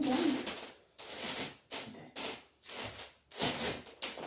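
Fabric rustles as a man twirls in a long robe.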